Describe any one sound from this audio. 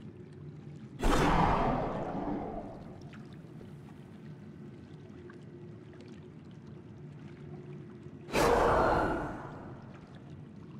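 A magic spell bursts with a loud whoosh that fades away.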